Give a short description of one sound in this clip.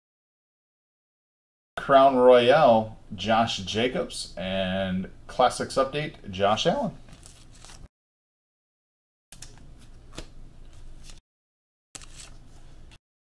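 Trading cards rustle and slide against each other in hands.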